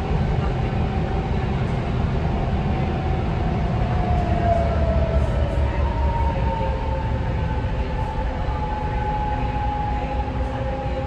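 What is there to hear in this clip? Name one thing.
Train wheels whine with a slowly shifting pitch.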